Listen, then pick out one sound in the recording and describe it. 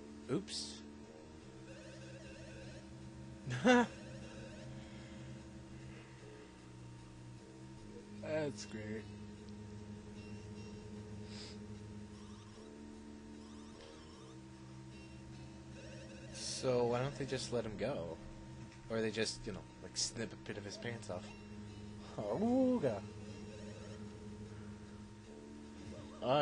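Short electronic blips and chimes sound now and then.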